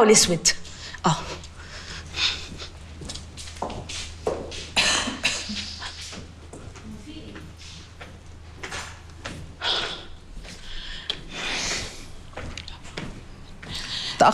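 High heels click on a hard floor and stairs.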